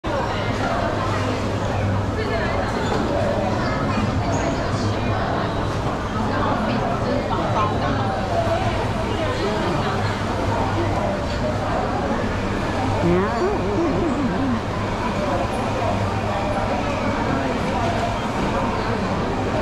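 A crowd of men and women chatters all around.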